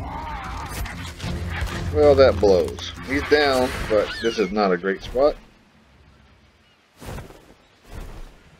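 Large wings beat with heavy whooshes.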